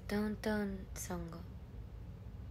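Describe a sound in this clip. A young woman speaks briefly and softly, close to the microphone.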